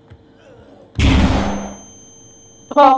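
A stun grenade bursts with a loud bang.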